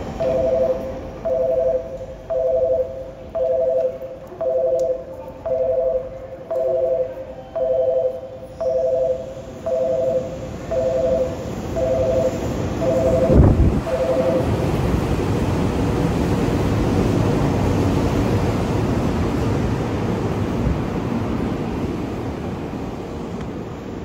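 A train approaches and rumbles past close by on the rails.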